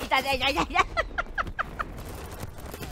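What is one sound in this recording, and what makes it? A young woman laughs loudly and gleefully into a microphone.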